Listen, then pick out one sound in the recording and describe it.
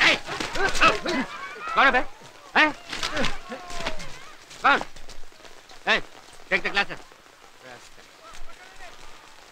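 Men shout angrily over one another.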